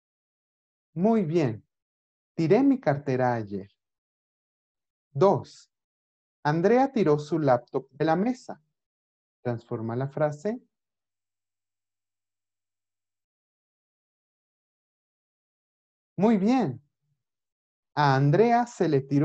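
A man speaks calmly through a microphone, pausing now and then.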